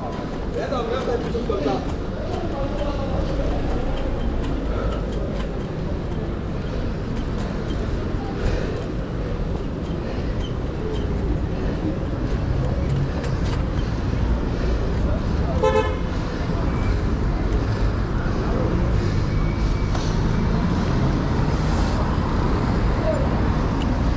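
City traffic rumbles all around.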